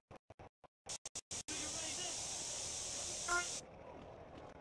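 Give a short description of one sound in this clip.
A spray can hisses steadily.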